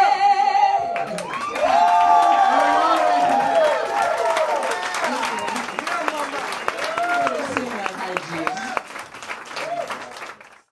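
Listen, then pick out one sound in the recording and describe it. A choir of men and women sings together.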